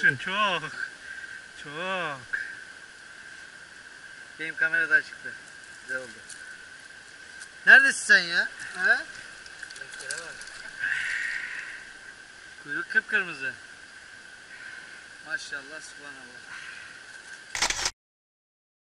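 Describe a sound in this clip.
A stream flows over stones.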